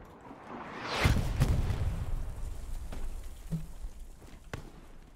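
A loud explosion booms in the distance and rumbles away.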